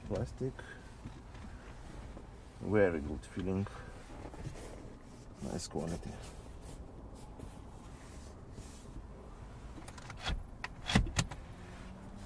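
A hand brushes and pats over soft seat fabric.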